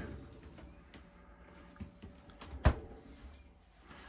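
A cupboard door bangs shut.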